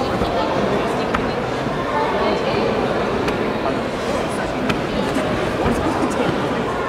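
A murmur of many voices echoes through a large hall.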